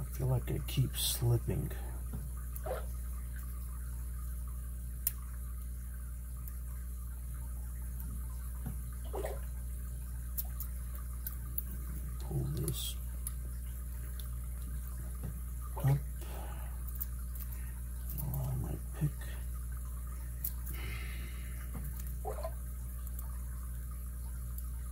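Small metal picks scrape and click inside a padlock.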